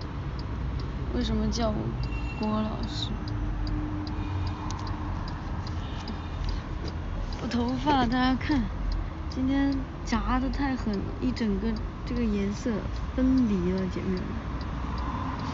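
A young woman speaks softly and closely into a phone microphone.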